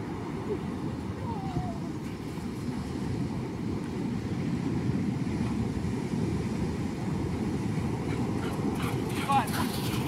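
Surf breaks and rumbles on a beach.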